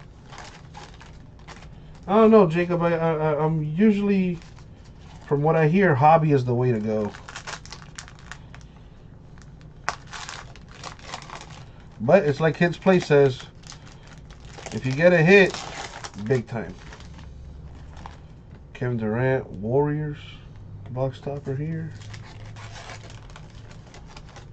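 A foil wrapper crinkles and tears as hands open it.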